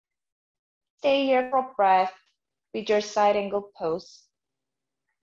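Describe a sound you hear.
A young woman speaks calmly and close up.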